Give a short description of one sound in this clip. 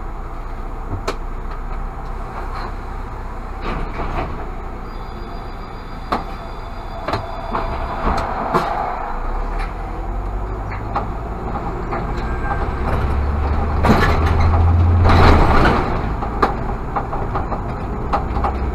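A car engine hums steadily with road noise, growing louder as the car picks up speed.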